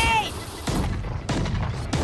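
A flash grenade bursts with a loud ringing bang.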